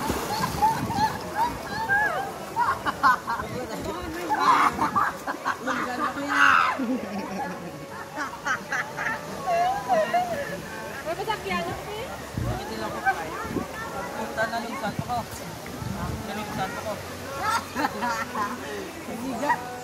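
Several people chatter and call out outdoors across water.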